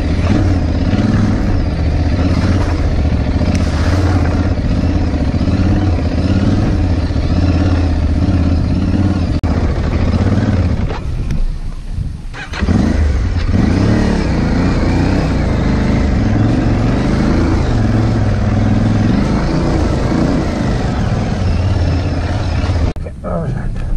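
A motorcycle engine roars and revs up and down close by.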